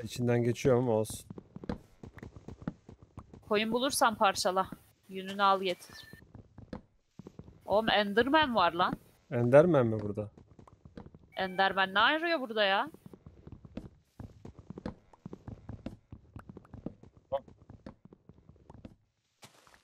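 Soft, rapid knocks of wood being chopped repeat throughout.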